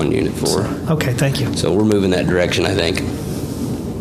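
A second man speaks into a microphone.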